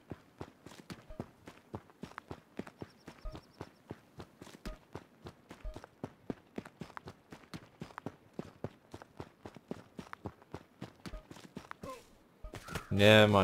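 Footsteps crunch quickly over leaves and grass.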